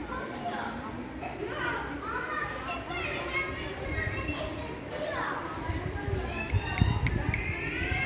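A kitten meows repeatedly nearby.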